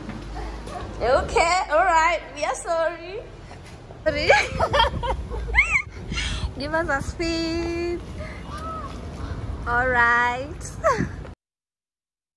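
A young woman talks cheerfully up close.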